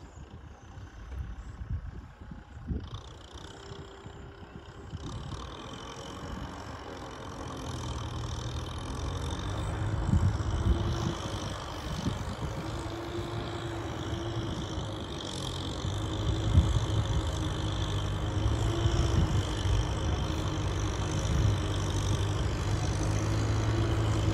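A tractor engine rumbles and grows louder as it approaches.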